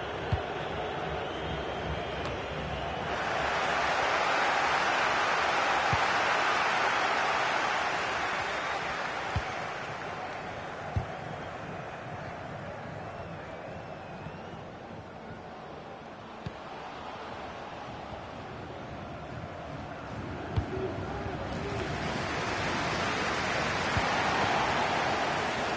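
A large stadium crowd roars steadily, swelling and fading.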